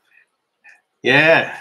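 A man speaks briefly and calmly, close by.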